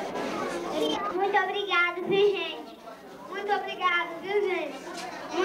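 A woman speaks to the children at close range.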